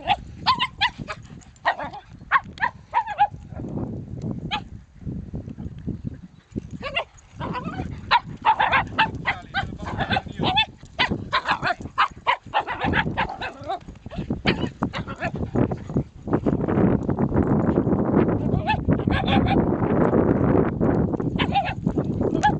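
Dogs bark excitedly outdoors.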